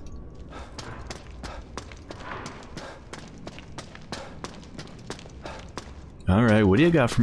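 Footsteps clang on a metal grating.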